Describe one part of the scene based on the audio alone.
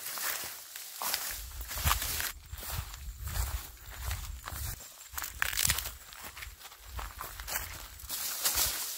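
Footsteps crunch on dry grass and leaves.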